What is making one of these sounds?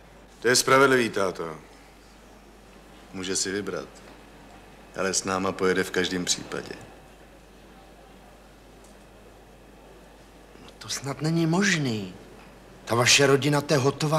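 Men talk with each other nearby in a calm, friendly way.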